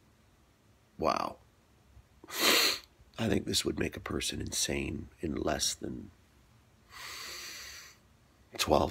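A middle-aged man speaks close to a microphone, in short bursts with pauses.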